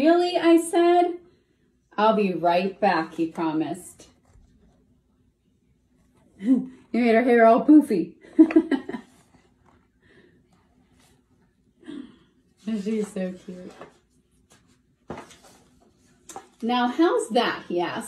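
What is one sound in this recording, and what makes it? A woman reads aloud expressively, close to a microphone, with pauses.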